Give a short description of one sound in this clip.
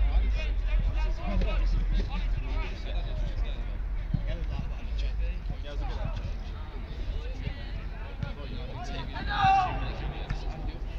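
Young men shout and call out to each other on an outdoor pitch, some way off.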